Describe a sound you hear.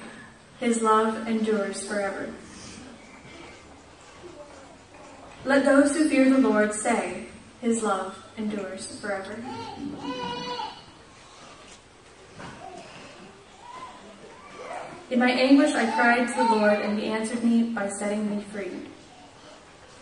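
A young woman reads aloud into a microphone.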